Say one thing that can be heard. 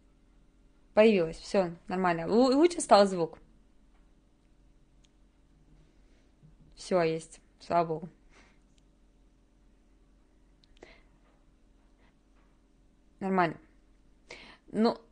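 A young woman speaks calmly into a close microphone, in short phrases with pauses.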